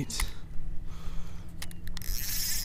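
A fishing reel clicks and whirs as its handle is turned.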